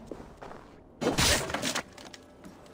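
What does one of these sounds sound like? A wooden door crashes and splinters.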